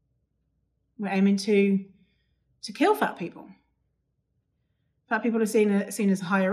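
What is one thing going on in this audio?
A young woman speaks calmly and closely into a microphone, in short phrases.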